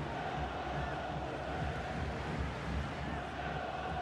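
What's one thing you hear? A football is struck hard with a thud.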